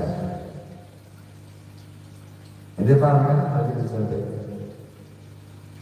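An older man sings slowly into a microphone, heard through a loudspeaker in a room.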